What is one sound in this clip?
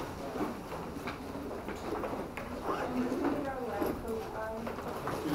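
A man speaks calmly at a distance in a room with some echo.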